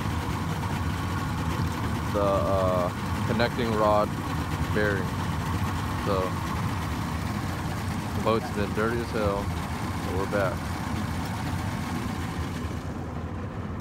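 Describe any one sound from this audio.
Two outboard motors idle with a steady low rumble.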